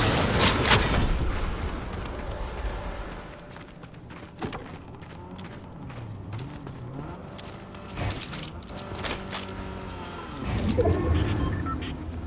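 Footsteps thud quickly on wooden floors and stairs.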